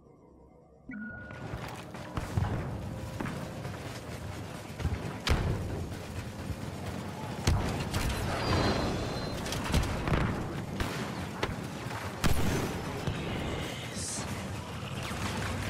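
Blaster shots fire in rapid bursts.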